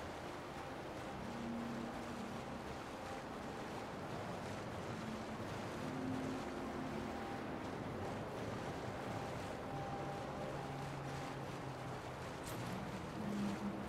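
Water splashes steadily as a swimmer strokes through it.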